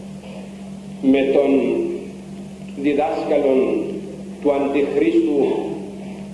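An elderly man speaks slowly and solemnly into a microphone, his voice echoing in a large hall.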